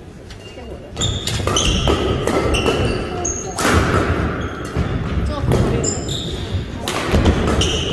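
Shuttlecock hits from badminton rackets ring out in an echoing hall.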